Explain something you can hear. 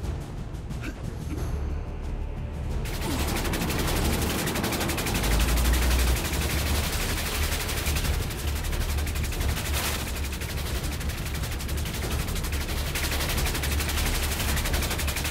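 Heavy machinery rumbles and clanks steadily.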